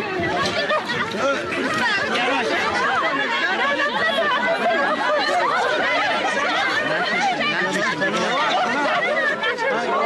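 A crowd of women chatters and calls out loudly all at once, close by.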